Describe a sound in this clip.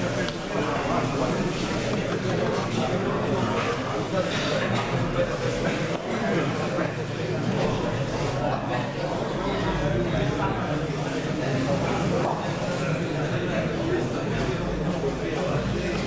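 A crowd of men chatters in a large echoing hall.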